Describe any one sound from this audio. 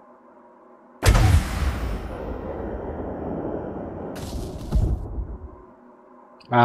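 A spaceship's weapons fire with a loud roaring blast.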